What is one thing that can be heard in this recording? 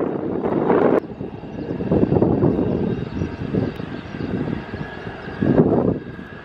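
A jet airliner's engines roar loudly as it takes off.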